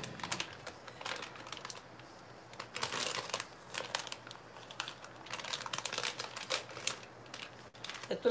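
A paper packet rustles and crinkles close by.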